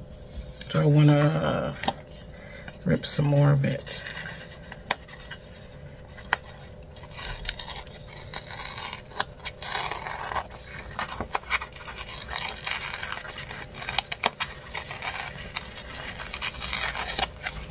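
Paper sheets rustle and slide over a table.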